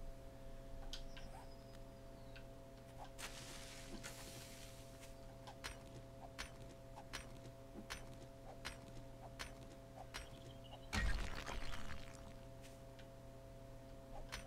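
A pickaxe strikes rock repeatedly with sharp knocks.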